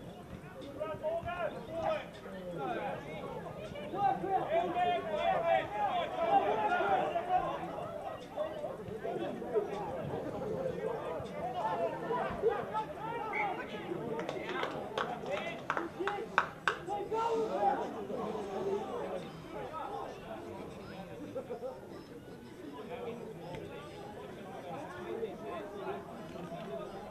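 Young players shout and call to each other outdoors across an open field.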